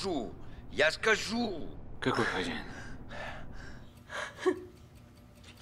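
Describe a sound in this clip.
A man speaks in a low, strained voice close by.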